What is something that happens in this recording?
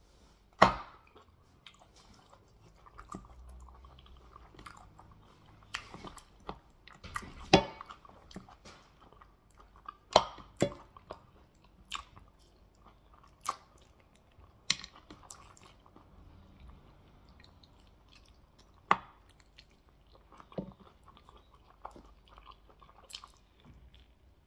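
A man chews and smacks his lips close to a microphone.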